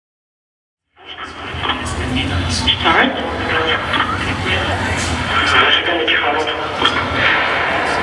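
A live broadcast plays loudly through outdoor loudspeakers.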